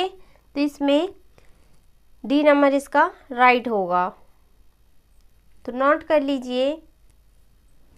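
A young woman speaks clearly and calmly into a nearby microphone, in short phrases with pauses.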